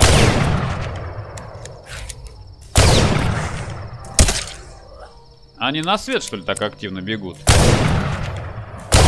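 Loud shotgun blasts boom and echo, a few seconds apart.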